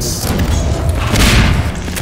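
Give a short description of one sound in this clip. Sparks crackle and fizz as a metal object is struck.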